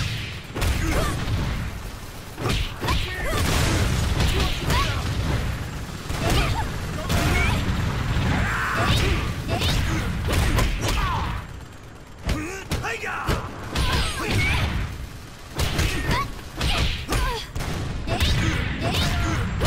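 Fighting-game punches and kicks land with sharp thuds.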